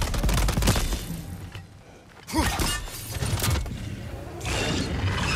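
Heavy footsteps thud on a stone floor.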